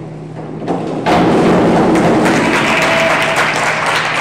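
A diver splashes into a pool.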